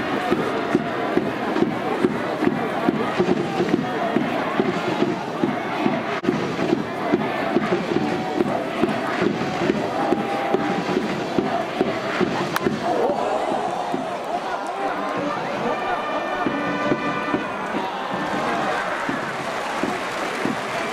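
A large crowd chants and cheers rhythmically across an open stadium.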